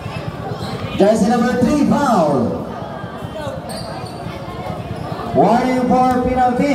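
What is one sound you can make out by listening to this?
Men in the crowd shout loudly nearby.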